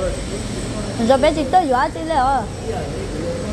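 A young girl speaks in a high voice.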